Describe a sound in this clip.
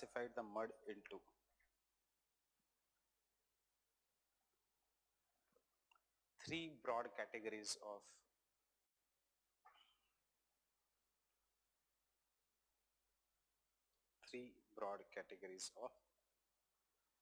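A man speaks calmly through a microphone, in short bursts with pauses.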